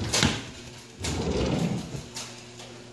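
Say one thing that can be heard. A drawer rumbles as it slides open.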